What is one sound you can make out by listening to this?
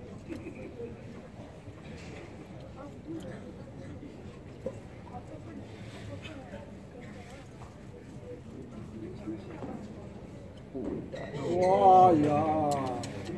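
Spectators murmur in a large echoing hall.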